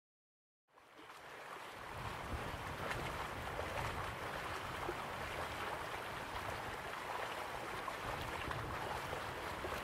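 A waterfall splashes steadily into a pool.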